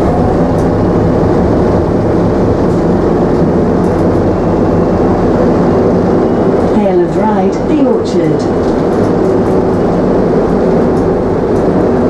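A bus engine rumbles and whines steadily from inside the bus.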